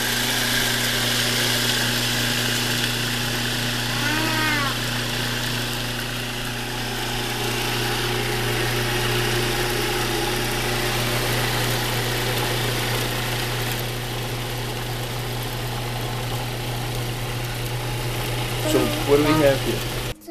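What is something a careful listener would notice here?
A food processor whirs steadily.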